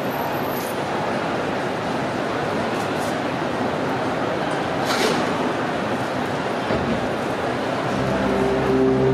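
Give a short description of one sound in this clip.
A film soundtrack plays loudly through loudspeakers in a large echoing hall.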